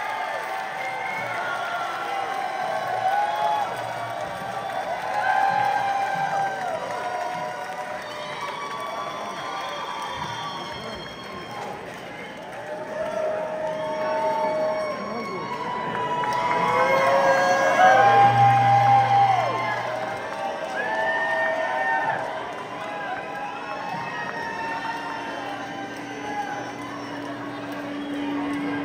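Live band music plays loudly through loudspeakers.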